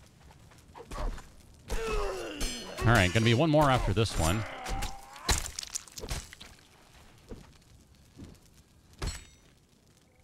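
Sword blades strike flesh with wet thuds.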